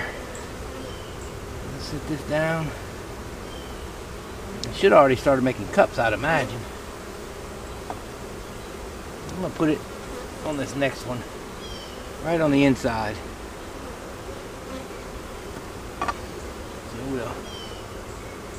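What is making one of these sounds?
Bees buzz around an open hive.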